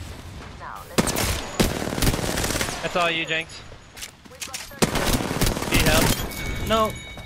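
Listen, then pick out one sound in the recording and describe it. Automatic gunfire rattles in loud bursts.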